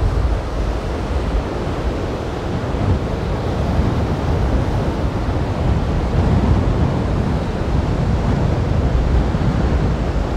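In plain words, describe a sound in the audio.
Waves wash and break on a sandy shore.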